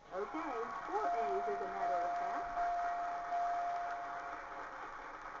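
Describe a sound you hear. A game show's electronic chime rings from a television speaker while a letter turns over.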